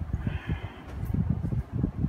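A cloth rustles and flaps as it is shaken out.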